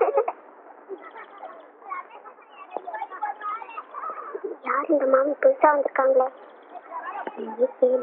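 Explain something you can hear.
Young girls talk softly to each other.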